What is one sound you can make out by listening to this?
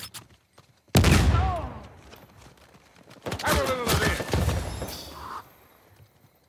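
Gunshots bang loudly in short bursts.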